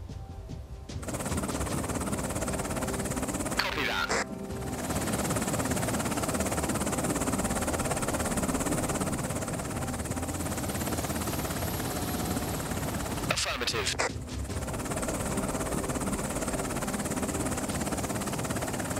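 A low engine drones steadily.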